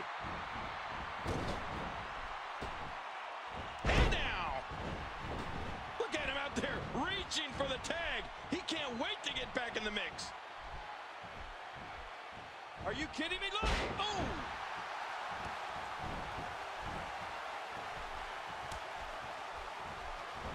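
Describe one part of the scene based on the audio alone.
A large arena crowd cheers and murmurs.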